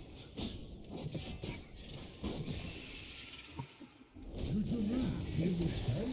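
Game sound effects of spells and blows burst and clatter.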